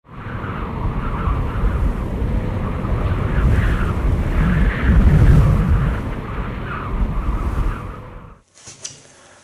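Wind blows sand across a dune.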